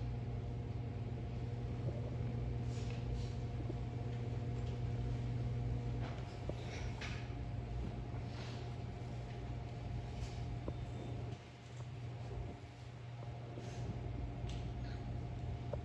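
A seated crowd murmurs and shifts softly in a large hall.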